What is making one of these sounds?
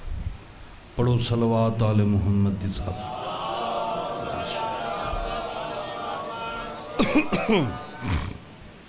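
A man chants with passion into a microphone, heard through loudspeakers with echo.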